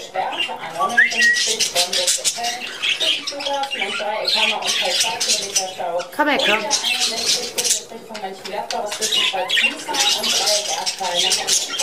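Budgies chirp and warble busily nearby.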